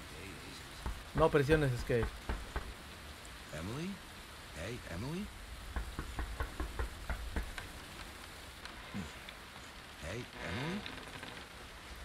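A man calls out loudly and anxiously.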